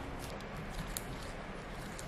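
A cat crunches on a piece of corn husk.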